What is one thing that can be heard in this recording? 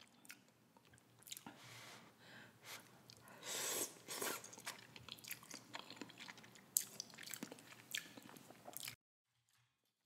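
A woman slurps noodles loudly and close to a microphone.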